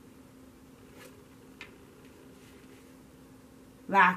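A playing card is laid softly down on a cloth.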